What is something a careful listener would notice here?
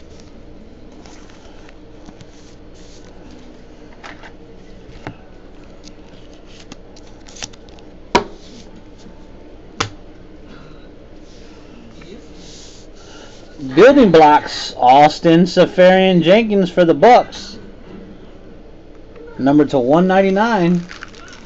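Cards are handled and slid into stiff plastic sleeves with soft rustles and clicks.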